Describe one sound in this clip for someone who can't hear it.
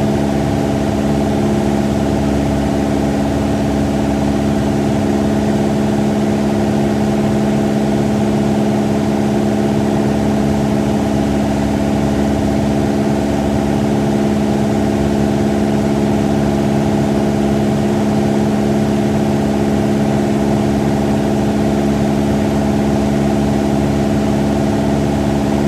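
A small plane's propeller engine drones loudly and steadily from close by.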